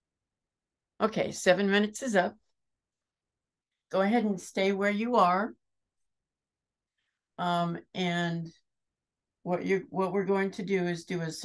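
An older woman speaks calmly through an online call.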